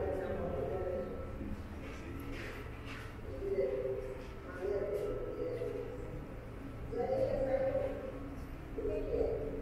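An elderly woman talks calmly through a loudspeaker in an echoing room.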